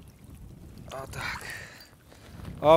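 A fish splashes in shallow water.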